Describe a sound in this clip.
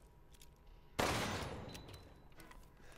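A pistol fires a single loud shot that echoes away.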